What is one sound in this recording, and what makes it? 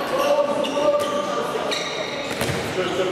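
A handball bounces on a hard floor.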